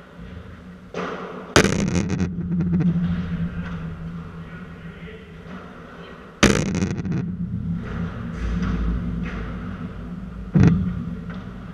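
Paddle rackets strike a ball with sharp pops that ring through a large echoing hall.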